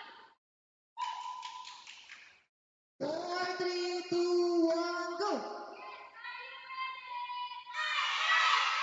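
A group of children sing together loudly.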